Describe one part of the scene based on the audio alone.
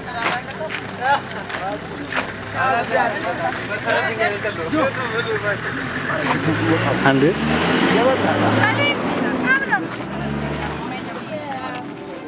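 Several young men and women talk and chat casually close by, outdoors.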